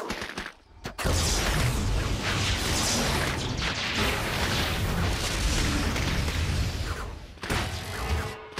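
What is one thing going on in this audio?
A giant robot rumbles and clanks as it advances.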